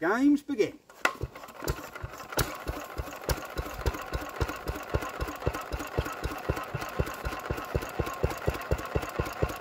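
A single-cylinder stationary engine starts and chugs steadily with a regular beat.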